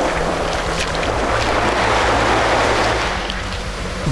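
Small waves wash up onto the sand.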